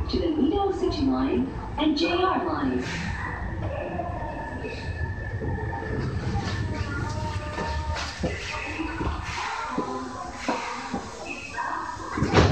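A train rumbles steadily as it rolls along the rails.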